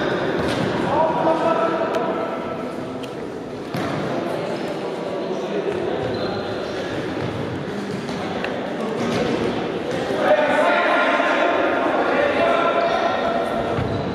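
Young men shout and call out across the hall.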